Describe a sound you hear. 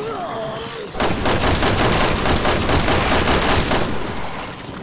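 A handgun fires several shots.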